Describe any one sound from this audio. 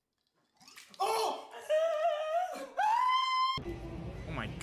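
A woman cries out and laughs loudly up close.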